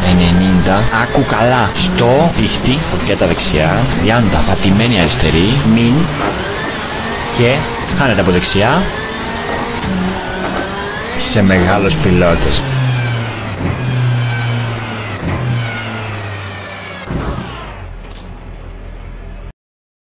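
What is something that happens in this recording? A rally car engine revs hard, rising and falling in pitch as it shifts gears.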